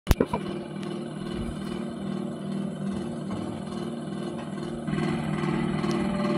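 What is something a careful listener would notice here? An oil pump jack creaks and clanks as its beam rocks.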